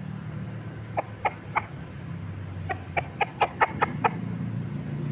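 A rooster clucks in short sharp bursts.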